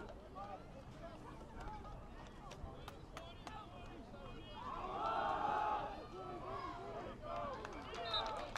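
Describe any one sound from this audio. A crowd of spectators shouts and cheers close by, swelling loudly for a moment.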